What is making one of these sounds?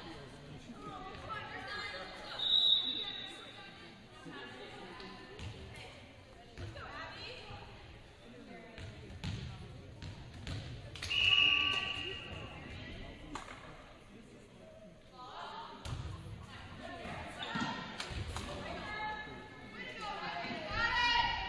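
A volleyball is struck with hands, echoing in a large gym.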